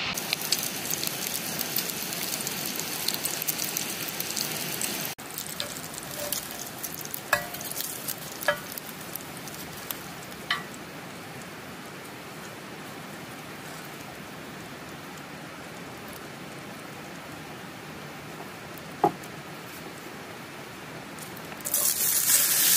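Bacon sizzles in a hot pan.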